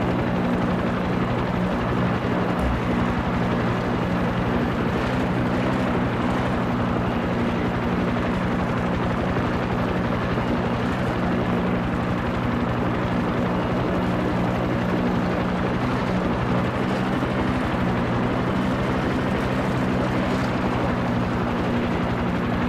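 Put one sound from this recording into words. A helicopter engine drones steadily with a rapid beating of rotor blades.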